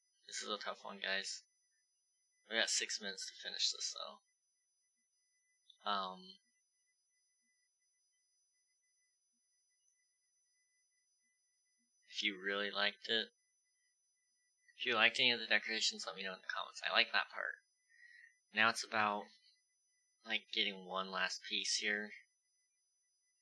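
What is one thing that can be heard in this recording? A young man speaks casually and close into a headset microphone, in bursts with pauses.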